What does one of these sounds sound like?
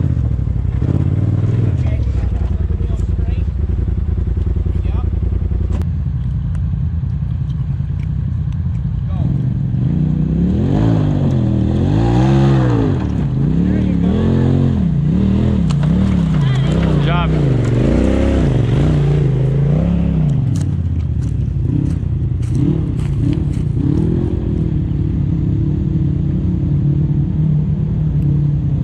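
An off-road vehicle's engine rumbles steadily close by.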